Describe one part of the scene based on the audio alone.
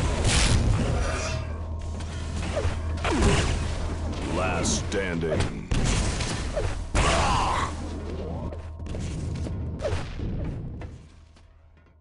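Rapid laser gunfire and explosions ring out from a video game.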